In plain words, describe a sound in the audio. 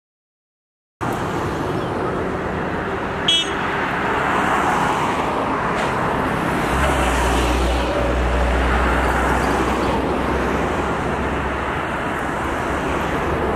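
Cars and minibuses drive past along a street.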